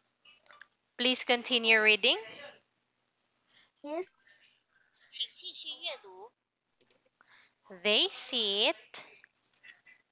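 A young woman speaks with animation over an online call, in short phrases with pauses.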